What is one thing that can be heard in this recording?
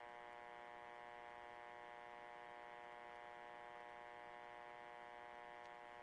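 A ventilation fan hums steadily.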